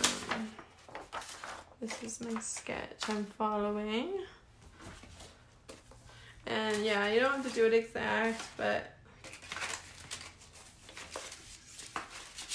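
Sheets of paper rustle and slide as they are handled.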